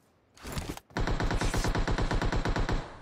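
Rapid automatic gunfire rattles in a video game.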